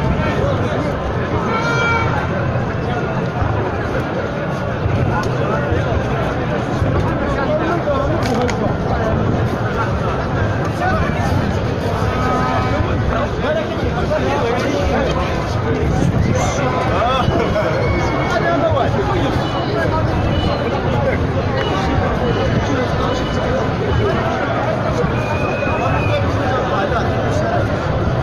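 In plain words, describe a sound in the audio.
A large crowd of men and women chants and shouts loudly outdoors.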